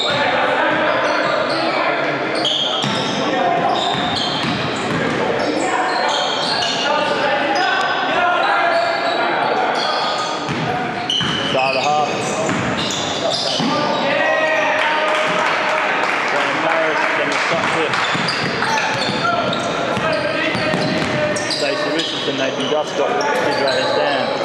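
Young men shout and call out to each other on the court.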